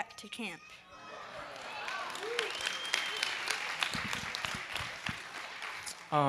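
A small crowd claps in applause.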